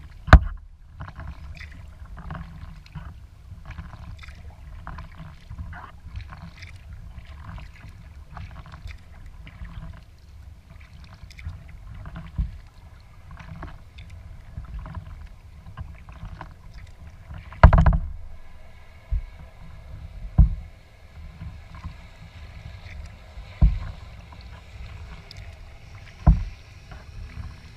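Water laps and splashes against a kayak's hull.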